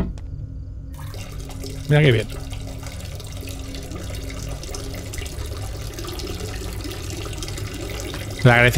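Liquid trickles steadily into a toilet bowl.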